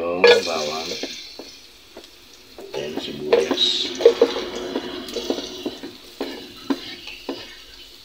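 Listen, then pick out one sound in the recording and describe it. A spatula pushes sliced onion off a cutting board into a pot.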